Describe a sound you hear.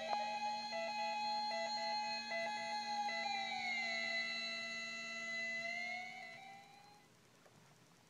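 A synthesizer drones with a buzzy electronic tone that bends in pitch as knobs are turned, then fades away.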